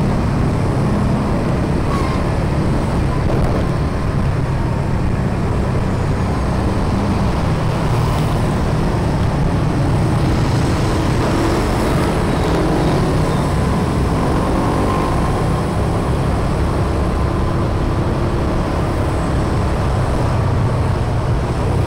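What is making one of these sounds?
A scooter engine hums steadily close by.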